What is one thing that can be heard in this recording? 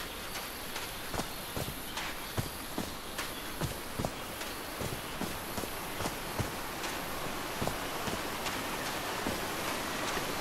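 Footsteps crunch steadily along a dirt path.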